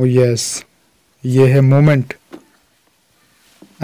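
A cardboard box lid is pulled open with a soft scrape.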